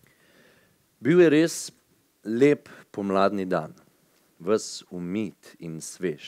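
A young man reads aloud into a microphone.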